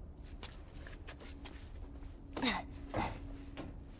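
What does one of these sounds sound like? Shoes scuff and thud on a hard surface as someone climbs up.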